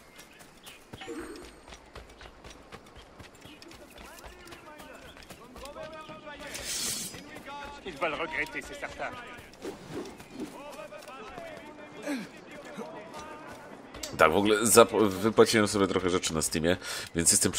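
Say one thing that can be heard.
Footsteps patter quickly on dirt and grass.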